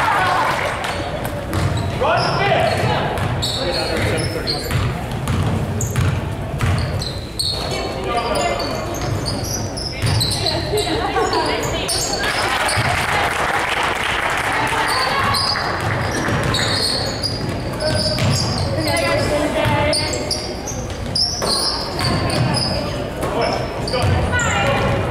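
Sneakers squeak on a wooden gym floor, echoing in a large hall.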